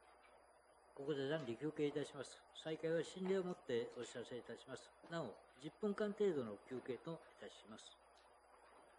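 An elderly man speaks calmly through a microphone in a large room.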